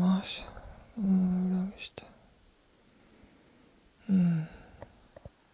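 A young man close by lets out short, drawn-out vocal sounds.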